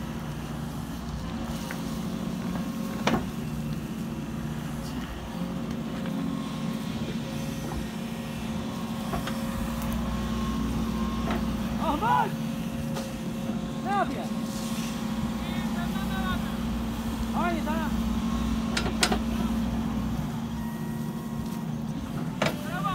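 An excavator bucket scrapes and thuds into soil.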